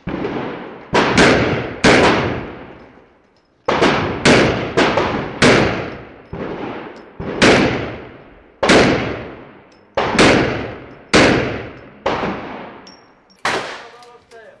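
A handgun fires shot after shot, each sharp crack ringing out with an echo.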